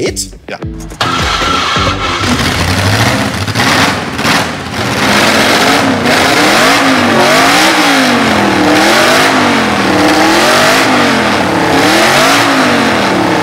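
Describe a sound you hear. A car engine revs up and down repeatedly, loud and close.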